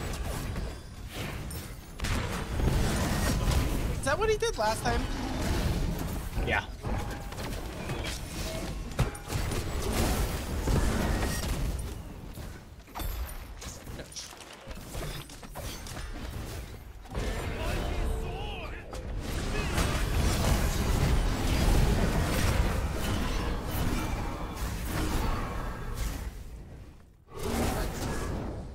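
Game sound effects of spells and weapon blows crackle and boom.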